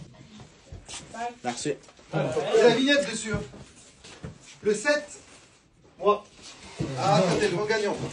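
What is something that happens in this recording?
A man talks loudly and with animation nearby.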